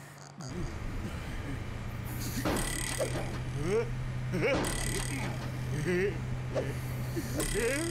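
A character snores softly.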